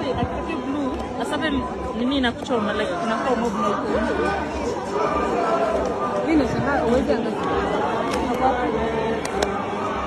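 A large crowd of people cheers and shouts outdoors.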